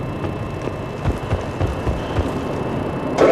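Heavy armoured footsteps thud on a metal floor.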